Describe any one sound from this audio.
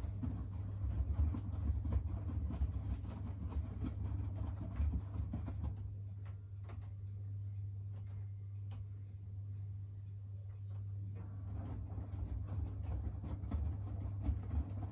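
A washing machine hums steadily with a low drone.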